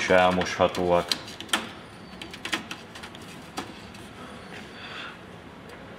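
A metal panel clicks into place.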